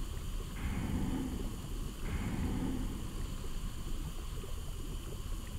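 A small fire crackles in a furnace.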